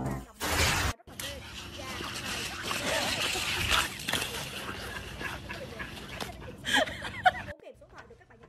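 A dog scuffles and scrapes across snowy pavement.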